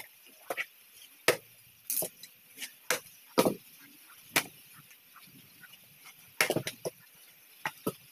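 A machete chops into wood with sharp, repeated knocks.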